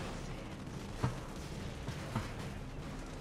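Two sharp gunshots crack.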